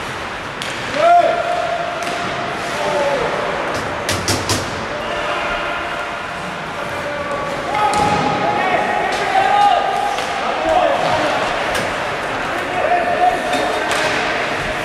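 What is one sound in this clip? Men shout to each other across an echoing rink.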